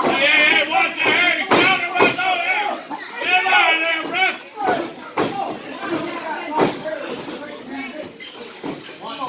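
A young voice shouts excitedly nearby in an echoing hall.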